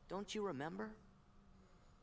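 A young man's voice exclaims with animation.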